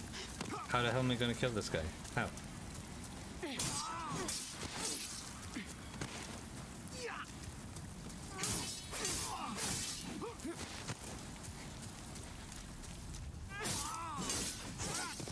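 Swords clash and slash in quick strikes.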